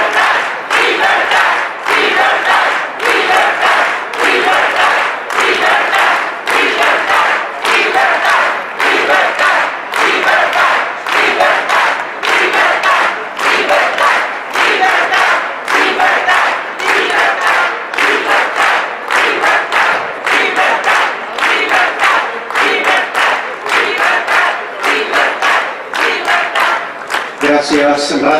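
A large crowd chants in rhythm outdoors.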